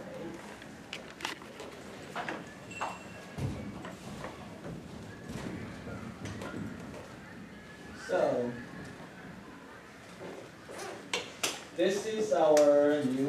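Several adults talk quietly in a room.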